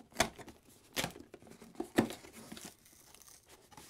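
A cardboard box flap is pulled open with a papery scrape.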